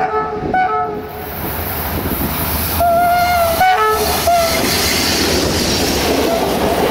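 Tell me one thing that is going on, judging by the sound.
A diesel-electric locomotive rumbles past.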